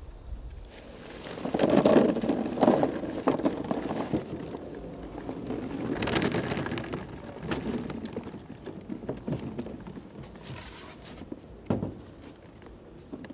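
Grapes tumble and rattle into small plastic baskets.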